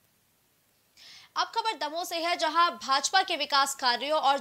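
A young woman speaks clearly and briskly into a microphone.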